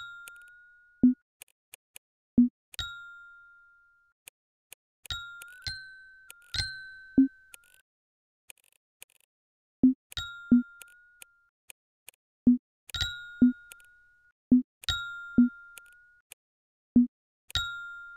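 Soft taps click as squares are marked.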